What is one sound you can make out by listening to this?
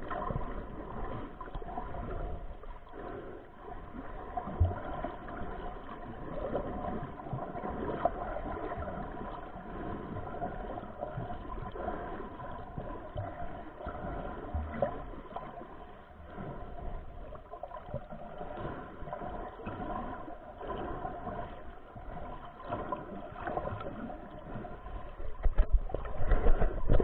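Water rushes and bubbles around the microphone underwater.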